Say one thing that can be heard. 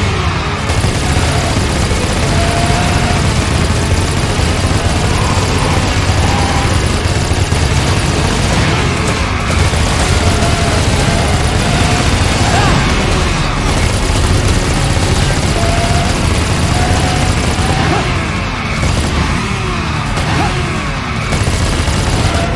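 A motorbike engine roars at high speed.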